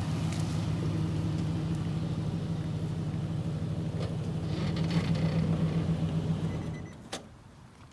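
A truck engine idles with a low steady rumble, then shuts off.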